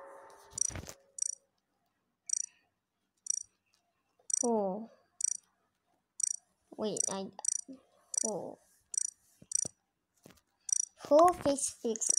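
Soft electronic blips tick in a steady rhythm.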